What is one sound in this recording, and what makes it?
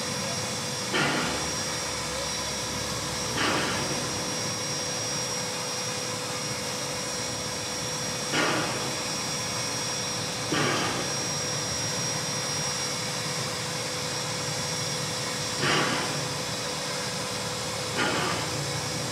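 Steam puffs in short bursts from a standing steam locomotive.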